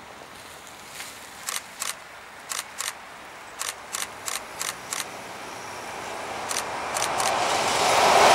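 Train wheels clack sharply over the rails.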